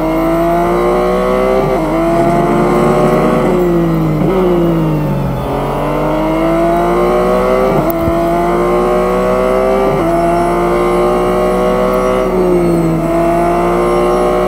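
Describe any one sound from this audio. A racing car engine revs high, rising in pitch and dropping sharply at each gear shift.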